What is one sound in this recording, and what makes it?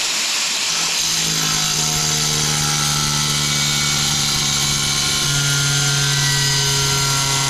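An angle grinder cuts through porcelain tile.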